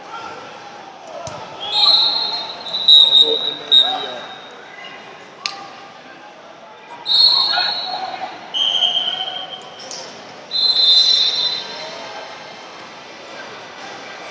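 A crowd of men and women murmur and chatter in a large echoing hall.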